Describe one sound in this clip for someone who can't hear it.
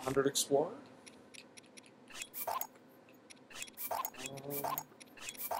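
Short electronic menu blips and clicks sound as items are selected.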